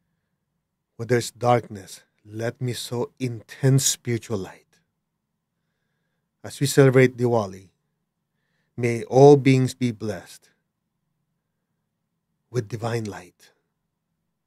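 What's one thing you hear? A middle-aged man speaks slowly and calmly into a close microphone, pausing between phrases.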